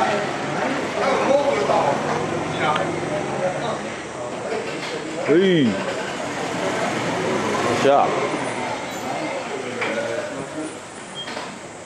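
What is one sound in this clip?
People chatter in a large echoing hall.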